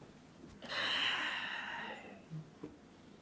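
Men laugh nearby.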